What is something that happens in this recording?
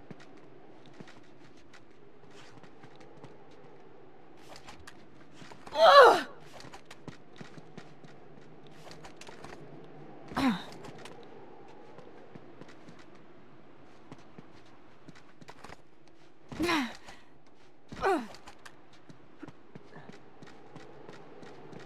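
Footsteps tread on creaking wooden floorboards.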